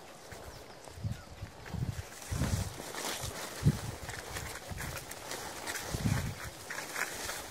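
Footsteps thud on a dirt path.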